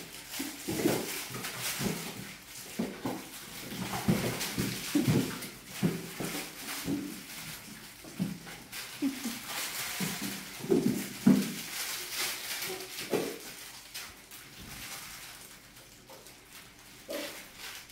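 Small paws patter and scrabble across a hard floor.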